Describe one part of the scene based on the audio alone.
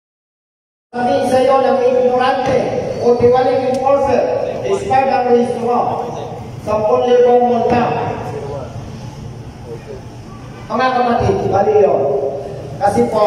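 A man speaks loudly to a crowd through a microphone and loudspeaker in an echoing hall.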